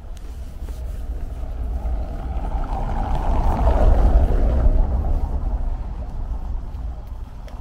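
A van drives by over cobblestones.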